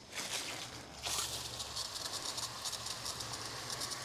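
Water sprays from a hose nozzle with a steady hiss.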